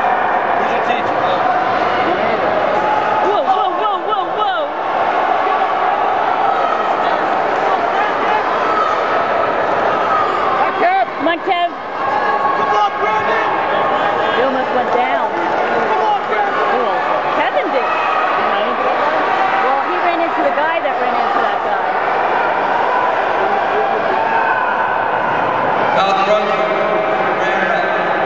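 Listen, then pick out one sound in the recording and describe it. A crowd of spectators cheers and shouts in a large echoing indoor arena.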